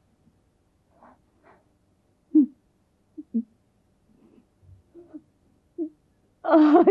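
A woman sobs quietly.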